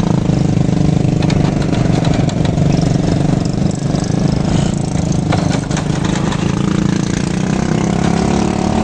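Other motorbikes drone past in traffic.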